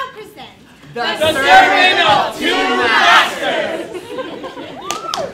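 A woman sings loudly on a stage.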